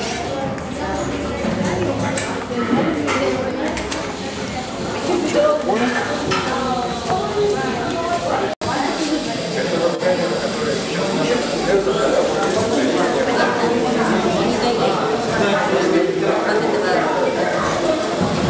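Many children and adults chatter throughout, in a large echoing room.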